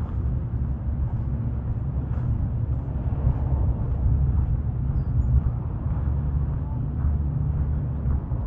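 Wind buffets the microphone with a low, steady rumble outdoors.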